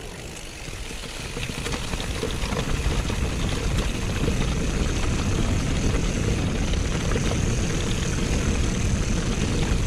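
Mountain bike tyres rumble over bumpy grass.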